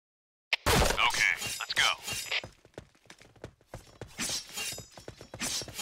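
A knife swishes and strikes in quick slashes.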